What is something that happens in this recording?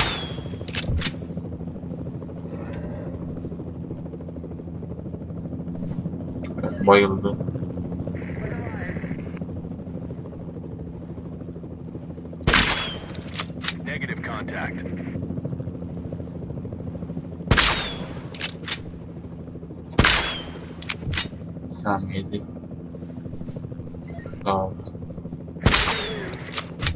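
Sharp gunshots crack now and then.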